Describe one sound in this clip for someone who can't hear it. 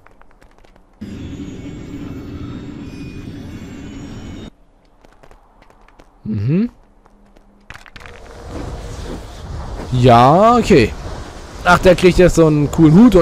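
A magic spell whooshes and sparkles with a shimmering hum.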